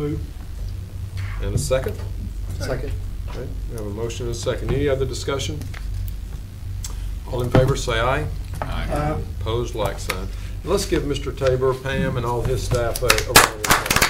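A man speaks into a microphone in a large room.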